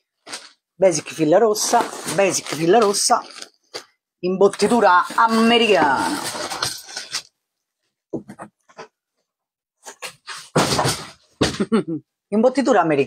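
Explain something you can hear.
Cardboard boxes rustle and thump as they are moved.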